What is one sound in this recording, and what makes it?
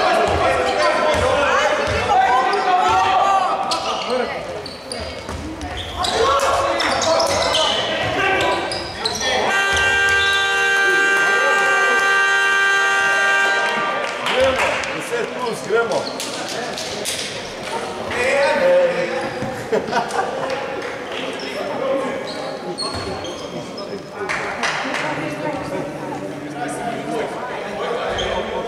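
Young men call out to each other across an echoing hall.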